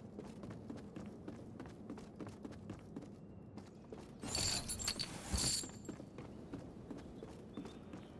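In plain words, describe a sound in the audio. Quick footsteps thud on wooden floors.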